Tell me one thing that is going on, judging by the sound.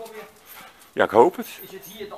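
A dog barks once, loudly.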